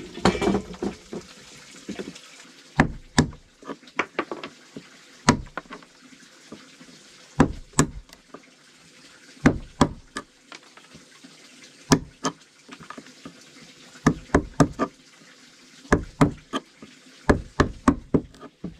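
A wooden mallet knocks sharply on a wooden block, again and again.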